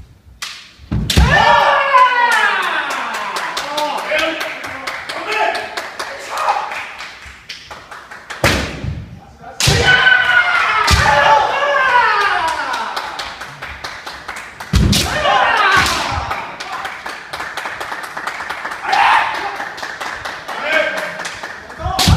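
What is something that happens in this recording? Men shout loud, drawn-out battle cries in a large echoing hall.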